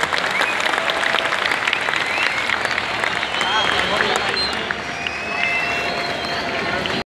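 A stadium crowd cheers and chatters loudly.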